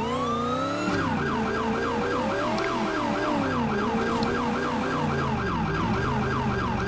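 A police siren wails rapidly.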